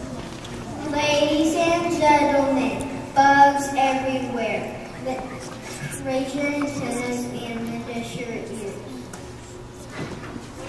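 Young children sing together into a microphone in an echoing hall.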